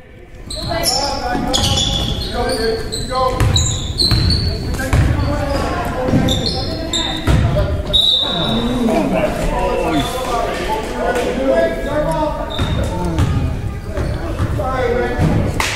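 Spectators talk and call out in an echoing gym.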